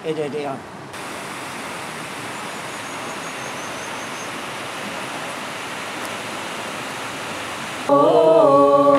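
A river flows and rushes steadily.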